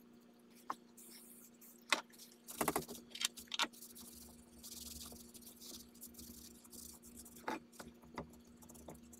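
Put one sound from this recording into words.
A cloth rubs and scrubs along a metal barrel.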